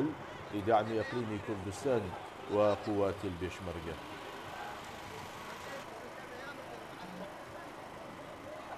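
A large outdoor crowd chants and murmurs.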